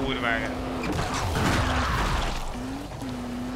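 A buggy slams into bodies with heavy thuds.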